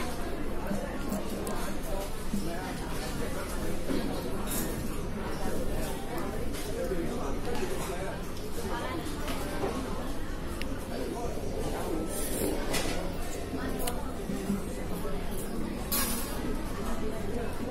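Chopsticks tap and scrape against a ceramic plate and bowl.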